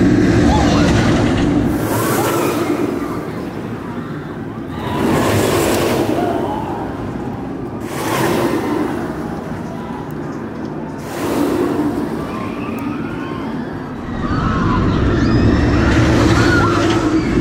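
Riders scream and shout with excitement.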